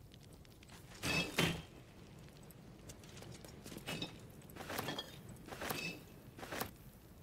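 Small items clink softly as they are picked up, a few times.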